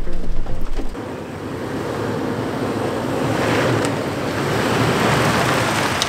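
An engine rumbles as a vehicle drives slowly over rough ground.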